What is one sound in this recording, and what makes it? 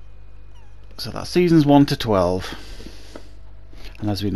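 A middle-aged man speaks with animation over a microphone.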